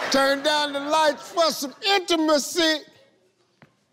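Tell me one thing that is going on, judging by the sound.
A man laughs and shouts loudly with animation.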